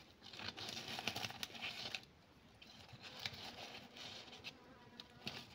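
Leaves and roots rustle in a woman's hands.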